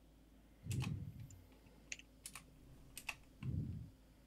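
Short electronic menu clicks and beeps sound in quick succession.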